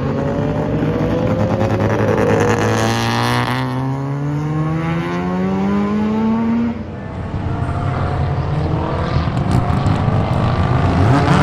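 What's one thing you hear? Several car engines roar and rev, rising in pitch as cars speed around a track.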